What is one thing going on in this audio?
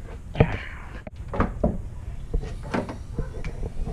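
A car's tailgate clunks open.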